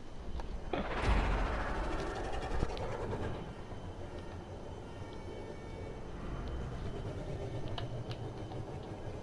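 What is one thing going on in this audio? A sports car engine rumbles and revs.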